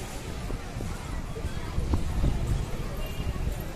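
A car drives slowly past.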